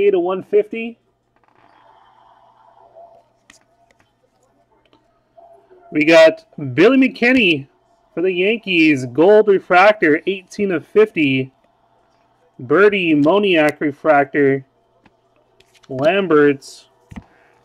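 Stiff cards slide and flick against each other in hands.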